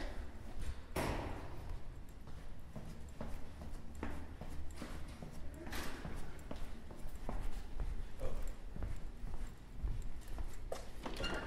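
Footsteps clatter on a hard floor.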